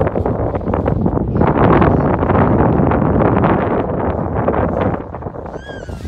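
Strong wind gusts roar loudly outdoors, then die down.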